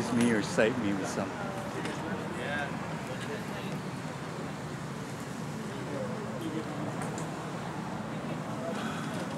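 Men talk and call out to each other nearby.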